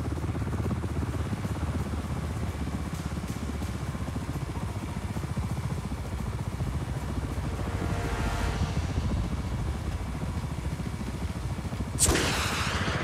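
Helicopter rotor blades thump rapidly and steadily overhead.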